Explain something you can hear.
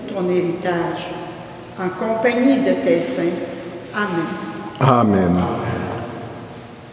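An elderly woman sings in a gently echoing room.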